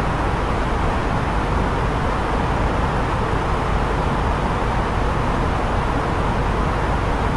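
A jet's engines roar steadily in a loud, rushing hum.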